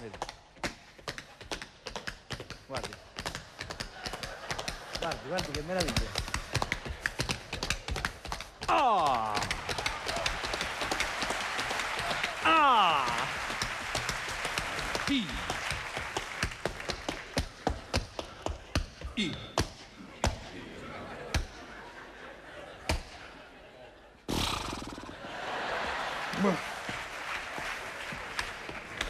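A man speaks loudly on a stage in a large hall.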